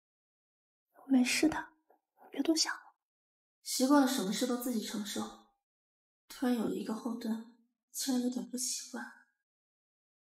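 A young woman speaks quietly and close by.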